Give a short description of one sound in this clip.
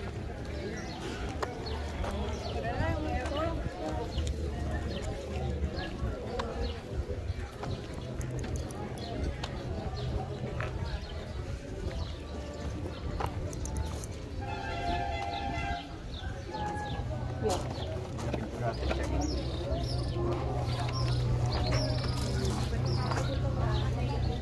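Voices of people chatter in the distance outdoors.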